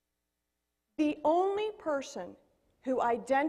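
A woman speaks into a microphone in a large hall, addressing an audience.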